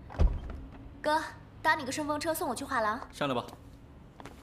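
A young man speaks casually from beside a car.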